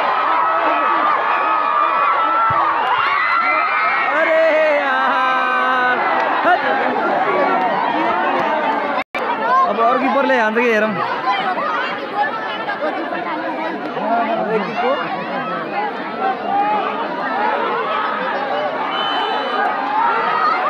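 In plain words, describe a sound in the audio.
A crowd of people shouts and chatters loudly outdoors.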